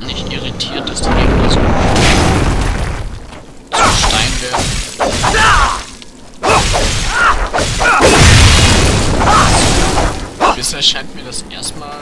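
Heavy weapon blows crash and thud against enemies.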